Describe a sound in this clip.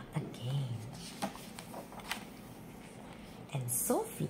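A page of a book turns with a paper rustle.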